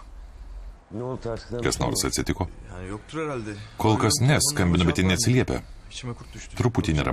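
A young man speaks tensely and close by.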